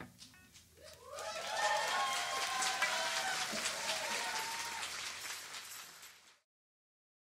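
A crowd claps loudly.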